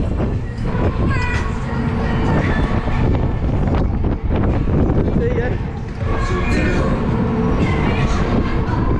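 A fairground ride's machinery rumbles and whirs as it swings around.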